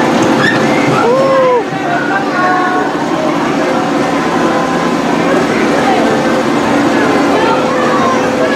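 A small train rumbles and clatters along its tracks.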